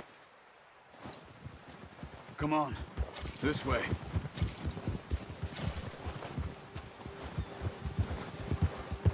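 Horse hooves crunch steadily through snow.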